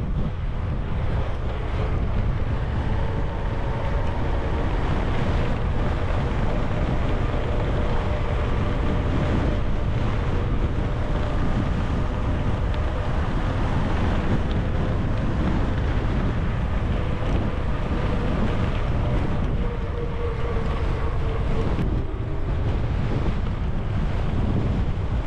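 Bicycle tyres hum steadily on smooth pavement.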